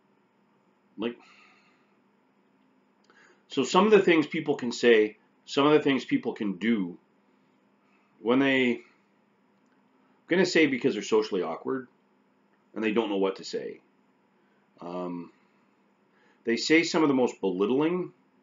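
A middle-aged man speaks calmly and closely into a microphone, pausing between phrases.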